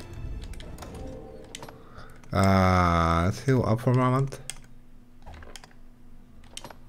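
Menu selections click and chime.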